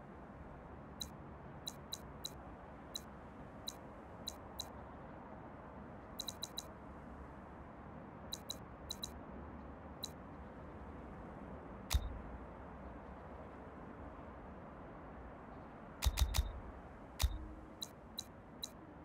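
Short soft interface clicks tick now and then.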